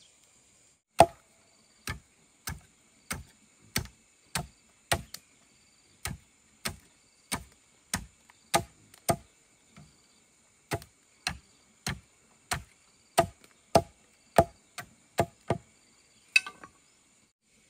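A wooden pole thuds repeatedly into the ground in steady blows.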